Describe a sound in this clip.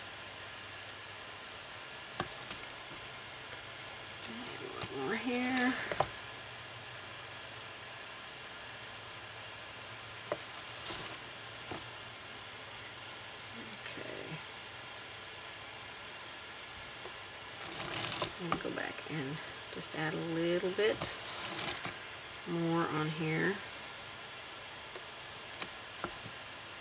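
A brush strokes softly across a painted board.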